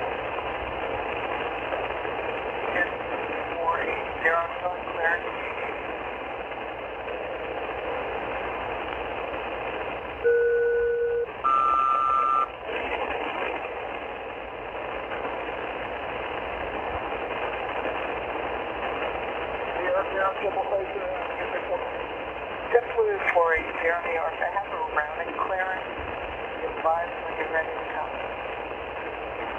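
A radio receiver hisses with steady static through its loudspeaker.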